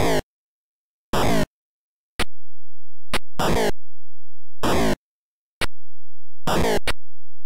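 Bursts of buzzy electronic game sound effects play in short, repeated blasts.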